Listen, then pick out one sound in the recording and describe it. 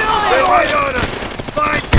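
Flames roar and crackle from an explosion.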